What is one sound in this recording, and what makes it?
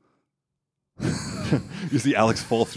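Another young man talks with animation, close to a microphone.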